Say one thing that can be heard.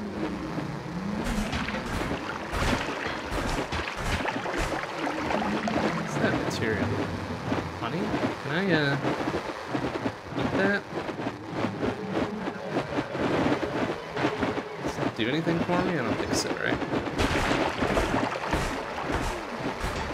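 A young man talks casually into a microphone.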